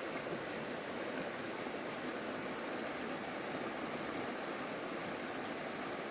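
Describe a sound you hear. A shallow stream babbles and trickles steadily over stones.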